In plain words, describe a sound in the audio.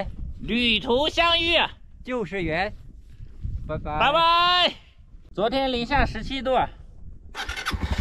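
A young man talks cheerfully close to a microphone.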